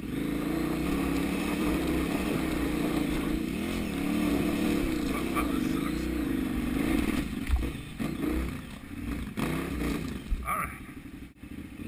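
A motorcycle engine putters and revs unevenly up and down.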